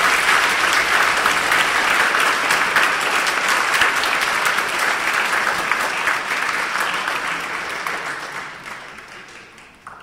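An audience applauds in a large echoing hall, and the clapping slowly dies away.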